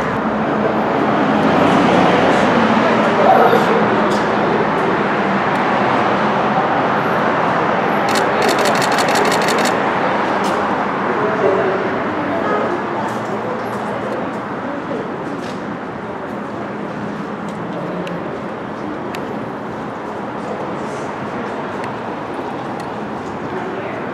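A man talks quietly at a distance.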